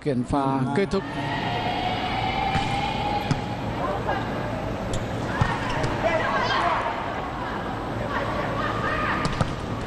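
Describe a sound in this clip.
A crowd cheers and murmurs in a large indoor arena.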